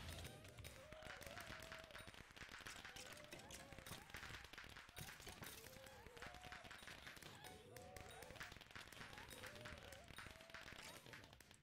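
Game magic effects crackle and pop in quick bursts.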